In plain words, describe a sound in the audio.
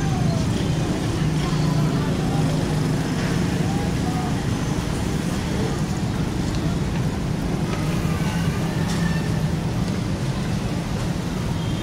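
Motorcycle engines hum and idle nearby outdoors.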